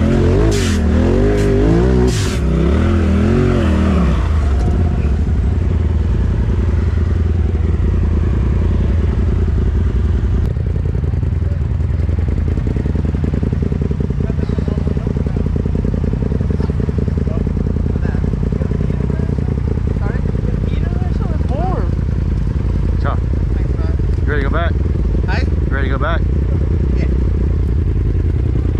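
An off-road vehicle engine idles with a low, steady rumble.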